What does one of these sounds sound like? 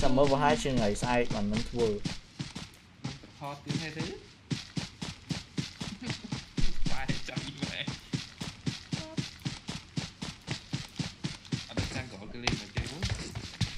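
Footsteps run rapidly through grass.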